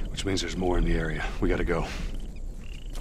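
A man speaks calmly and urgently nearby.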